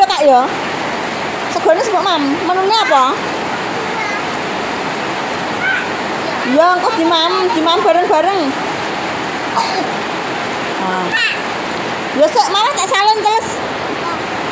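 A young girl talks close by in a high, lively voice.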